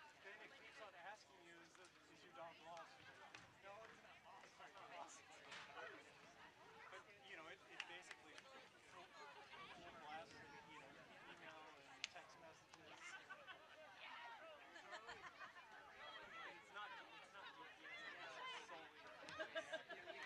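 Young women shout and call out to each other across an open field outdoors.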